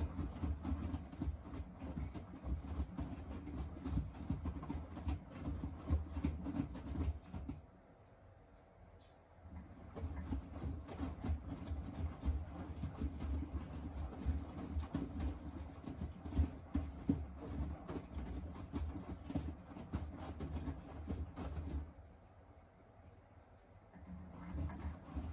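A washing machine drum turns with a low rumble.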